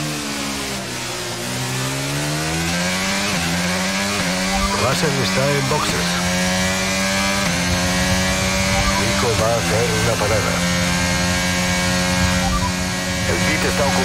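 A racing car engine screams, rising in pitch as it speeds up and dropping sharply at each gear change.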